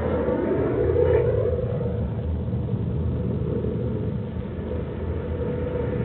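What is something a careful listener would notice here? A rocket whooshes away.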